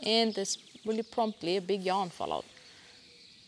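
A woman speaks calmly in a large echoing hall.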